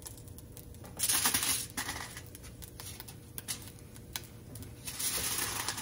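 Foil crinkles as a tortilla is folded.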